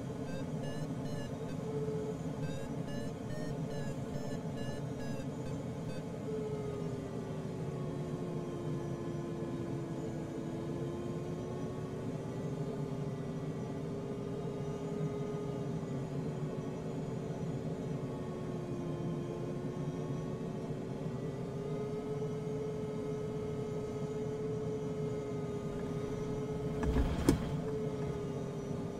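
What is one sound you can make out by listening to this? A glider's flight instrument beeps quickly, then changes to a steady tone that slowly rises and falls in pitch.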